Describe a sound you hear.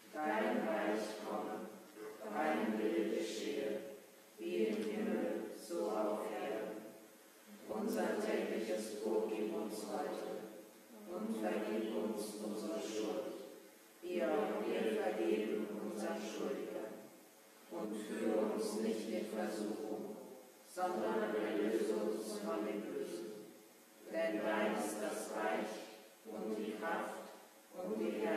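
A woman sings in phrases through a microphone in an echoing hall.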